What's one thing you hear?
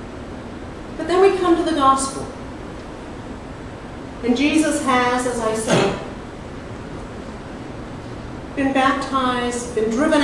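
A middle-aged woman speaks with animation into a microphone, in bursts with pauses.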